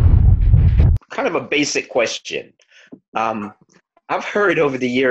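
A man speaks calmly up close, heard through a phone microphone.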